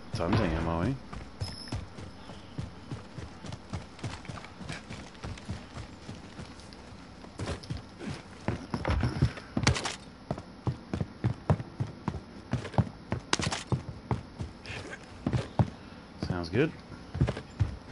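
A man talks into a microphone, close and casual.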